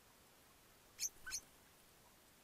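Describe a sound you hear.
A bird gives two short, sharp chirps nearby.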